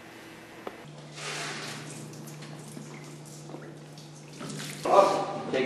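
Water pours and splashes into a shallow pool.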